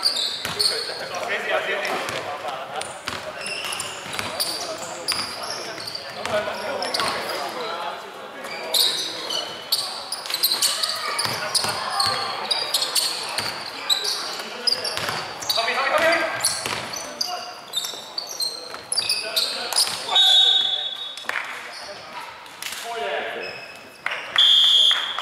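Young men call out to each other in a large echoing hall.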